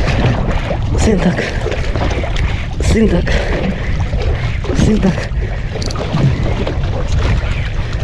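Wind rushes loudly over open water.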